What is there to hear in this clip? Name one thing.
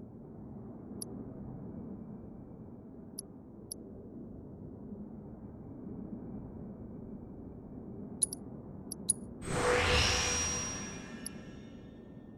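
Menu cursor clicks tick softly as a selection moves.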